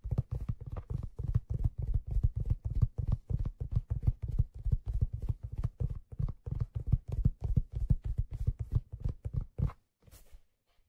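Fingers tap rapidly on a leather hat close to a microphone, making soft deep thuds.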